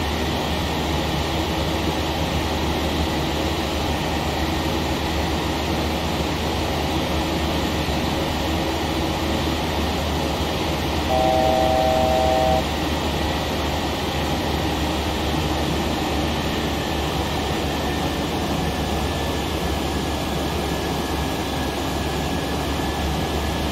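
Jet engines roar steadily, heard from inside a cockpit.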